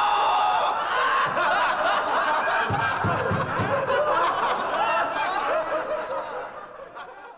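A young man laughs loudly and wildly.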